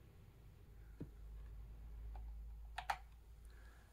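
Plastic keys click as they are pressed.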